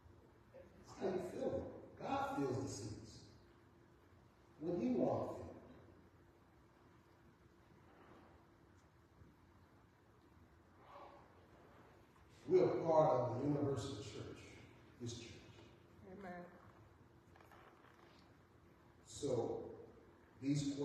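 A man speaks through a microphone in bursts, in a large echoing hall.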